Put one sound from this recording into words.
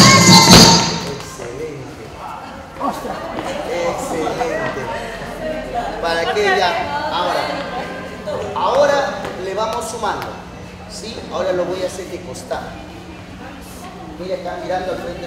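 Men and women chatter in a group nearby.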